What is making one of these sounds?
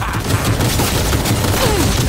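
An electric shock crackles and zaps.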